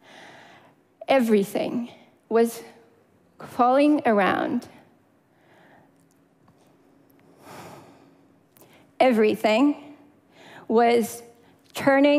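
A young woman speaks with feeling through a microphone in a large hall, pausing between phrases.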